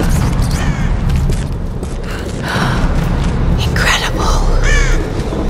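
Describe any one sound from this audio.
Footsteps crunch on a stone path.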